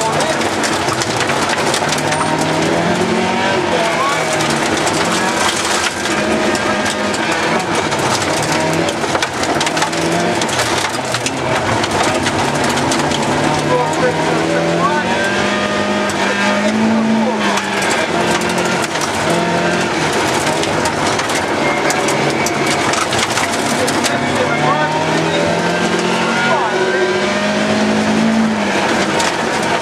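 Gravel and stones rattle and crackle against the underside of the car.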